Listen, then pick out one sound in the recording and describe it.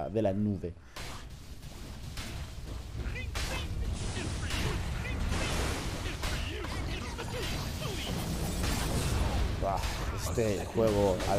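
Game spell effects crackle and clash in a fantasy battle.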